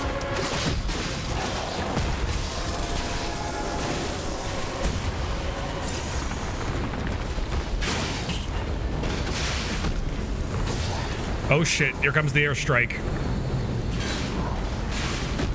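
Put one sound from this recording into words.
Loud magical blasts and sword strikes crash and boom.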